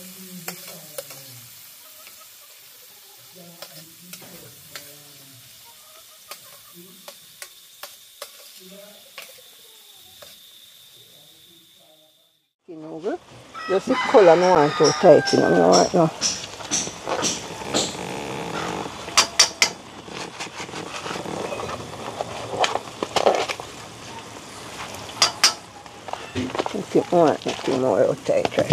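Food sizzles in a pan.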